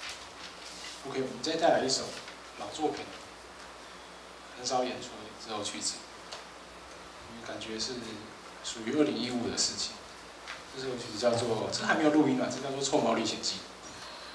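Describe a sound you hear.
A young man talks calmly into a microphone, heard through loudspeakers.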